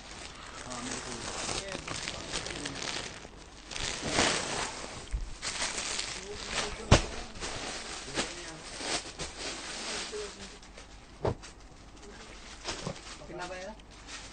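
Fabric rustles as it is folded and moved.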